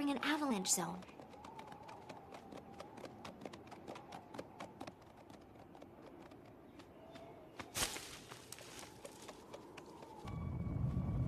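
Hooves clop quickly on hard ground.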